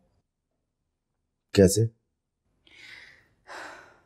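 A middle-aged man speaks in a low, serious voice.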